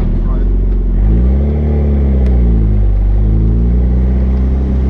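A car engine revs up and drops back down.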